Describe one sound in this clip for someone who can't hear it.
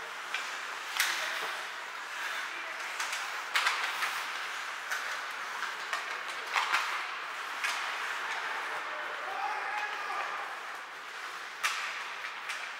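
Hockey sticks sharply smack a puck.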